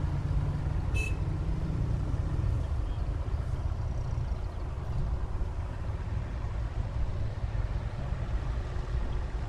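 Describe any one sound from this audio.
Tractor engines rumble in the distance.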